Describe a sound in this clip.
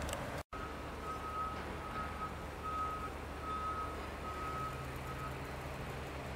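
A crane's warning alarm beeps in short repeated tones.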